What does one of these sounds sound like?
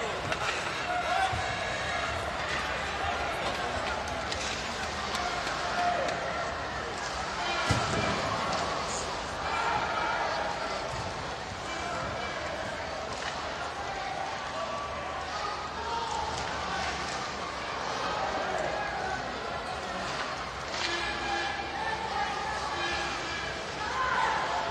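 A crowd murmurs and chatters throughout a large echoing arena.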